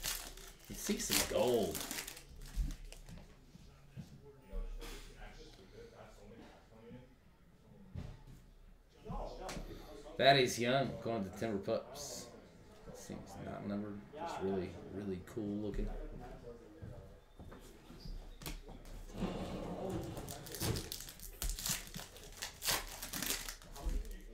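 A foil wrapper crinkles as hands tear it open.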